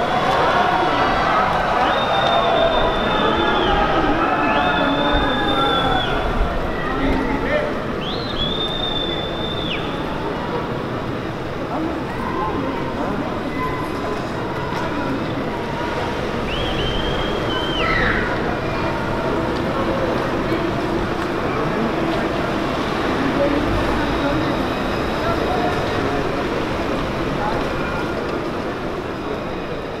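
A car engine hums as it moves slowly nearby.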